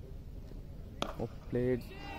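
A cricket bat strikes a ball at a distance.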